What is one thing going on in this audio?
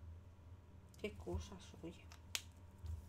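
A woman speaks briefly and calmly into a microphone.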